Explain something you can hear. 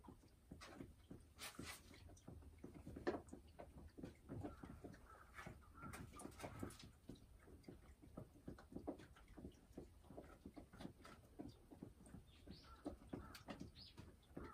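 A hen clucks softly close by.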